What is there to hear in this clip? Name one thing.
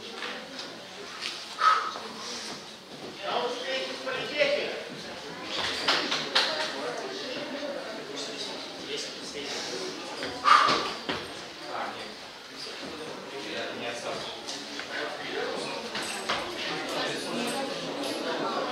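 Several people talk at once in a large echoing hall.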